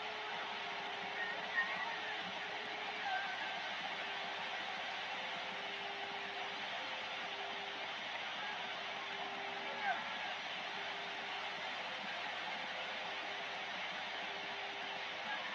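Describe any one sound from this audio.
Static hisses steadily from a radio receiver's loudspeaker.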